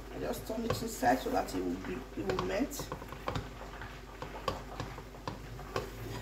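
A wooden spoon stirs and scrapes against a small pot.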